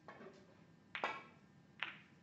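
A snooker cue strikes the cue ball with a sharp tap.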